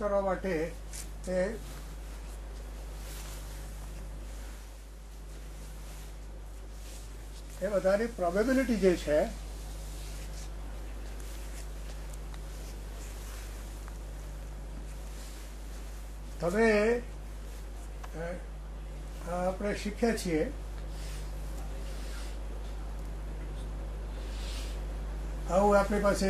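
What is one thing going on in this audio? An elderly man speaks calmly in short phrases through a microphone.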